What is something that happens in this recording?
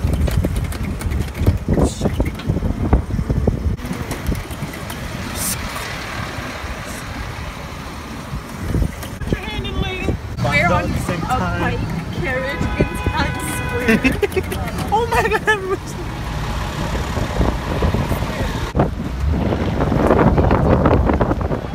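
City traffic rumbles along a busy street.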